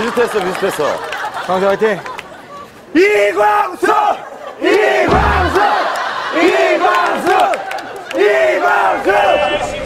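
A crowd of young men and women chants in unison outdoors.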